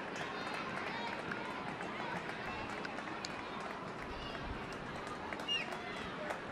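Young women call out to each other.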